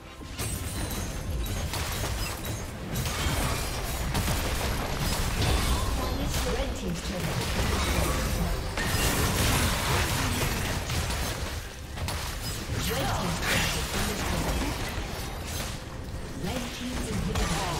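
Game spells and attacks crackle and boom in quick bursts.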